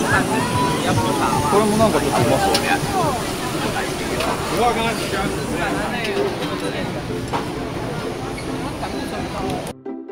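A crowd of people chatter all around, close by and outdoors.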